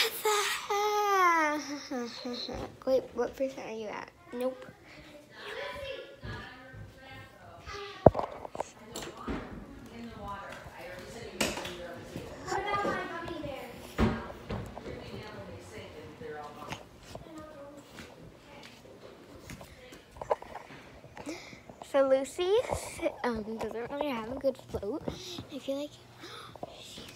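A young girl talks and sings animatedly close to a phone microphone.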